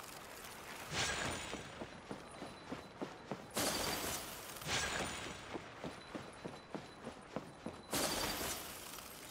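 Quick footsteps thud on wooden planks.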